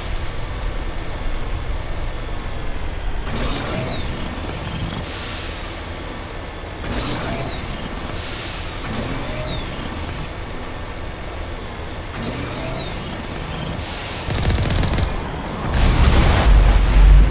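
Tyres roll over rough ground.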